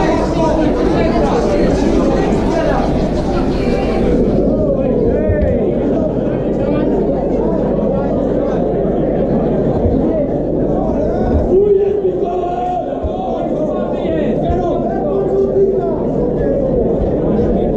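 A crowd murmurs and cheers throughout a large echoing hall.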